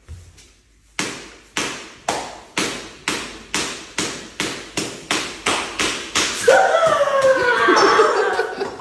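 A stick slaps repeatedly against bare feet in quick, sharp smacks.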